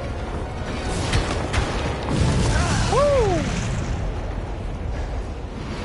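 A fire roars with deep rumbling explosions.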